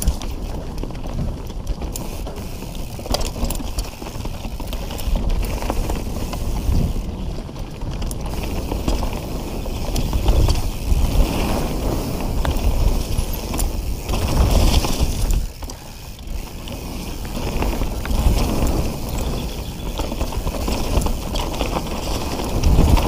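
Wind rumbles against a moving rider.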